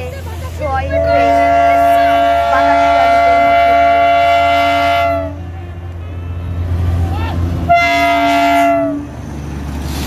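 A locomotive horn blows long and loud, twice.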